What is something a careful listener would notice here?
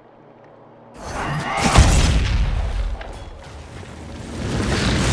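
A fiery blast booms and roars.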